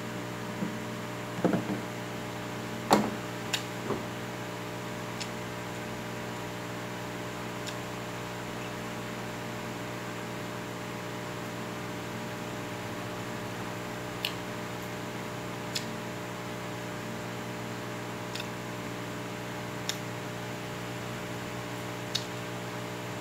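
A man eats close by with soft smacking and clicking sounds.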